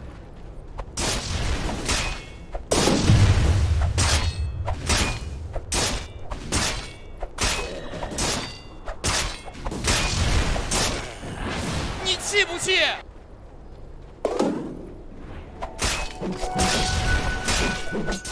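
Sharp bursts of fighting sounds, magic blasts and hits, come in quick succession.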